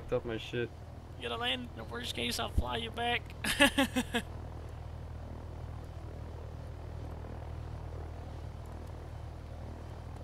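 A helicopter's rotor drones overhead.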